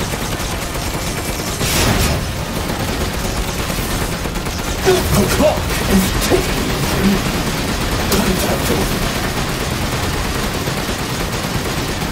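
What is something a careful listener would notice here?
Heavy gunfire rattles steadily.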